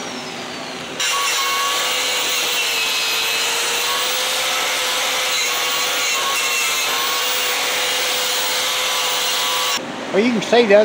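An angle grinder with a wire wheel whines steadily as it scours rusty metal.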